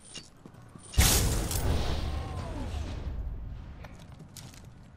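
A heavy metal door slides open with a loud mechanical whoosh.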